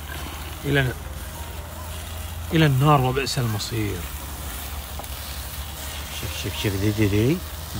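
Meat sizzles on a hot charcoal grill.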